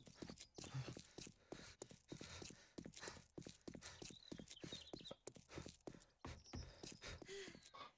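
Footsteps thud steadily on pavement.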